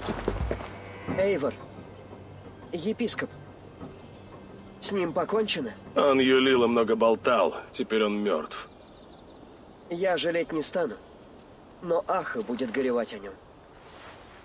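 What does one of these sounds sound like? A young man speaks calmly and close.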